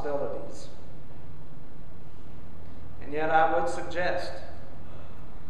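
An elderly man speaks slowly and calmly in a large echoing room.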